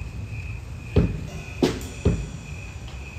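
A drummer strikes a drum kit with a few loud hits.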